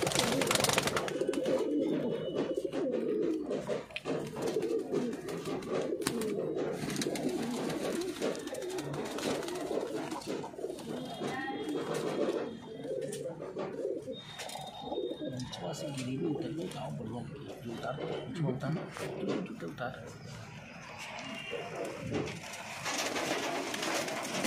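Pigeons coo steadily.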